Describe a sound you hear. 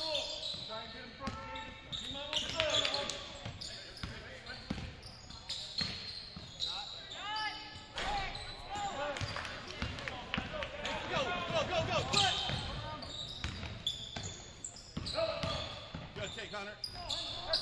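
Sneakers squeak sharply on a gym floor.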